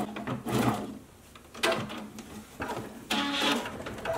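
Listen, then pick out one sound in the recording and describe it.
A plastic hoop clicks and knocks against a machine as it is taken off.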